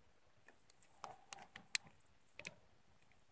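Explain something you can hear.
A crumpled metal can crinkles in a hand.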